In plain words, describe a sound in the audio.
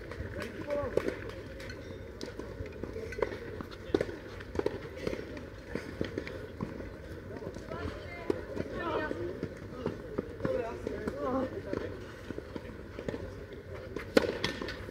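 Tennis balls are struck with rackets in a rally.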